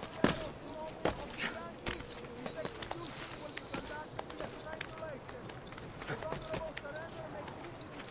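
A game character's hands grip and scrape on stone as he climbs.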